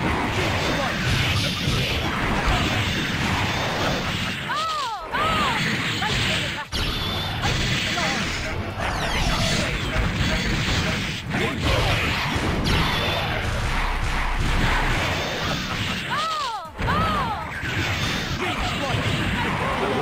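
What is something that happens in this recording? Fighting game hits, blasts and special attacks crash and whoosh in rapid bursts.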